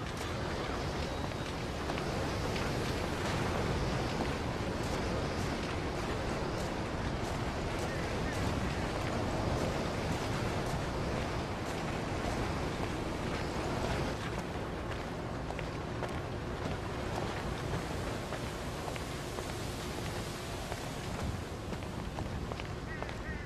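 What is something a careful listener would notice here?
Footsteps crunch on rocky, gravelly ground.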